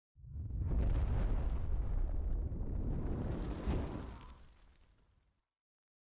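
A fireball roars and bursts.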